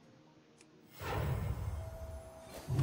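A fiery blast bursts and rumbles.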